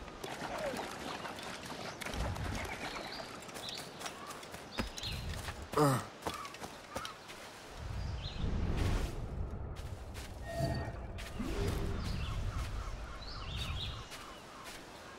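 Footsteps run over sand and grass.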